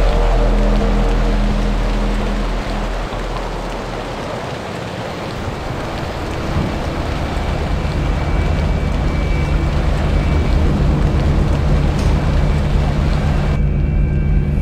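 Rain pours steadily outdoors.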